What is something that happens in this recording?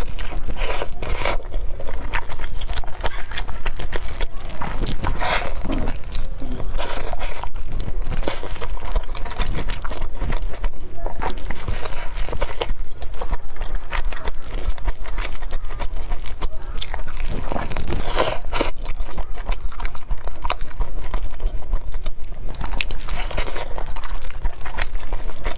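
Plastic gloves crinkle as dumplings are handled.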